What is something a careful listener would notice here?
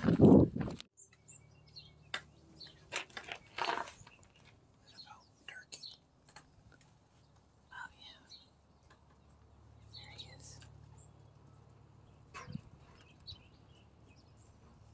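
Small birds chirp and twitter outdoors.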